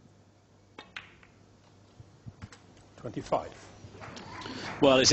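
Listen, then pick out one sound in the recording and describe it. Snooker balls knock together.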